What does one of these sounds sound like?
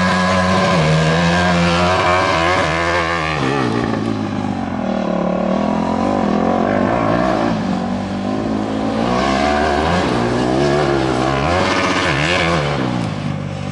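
A small engine revs hard, rising and falling in pitch.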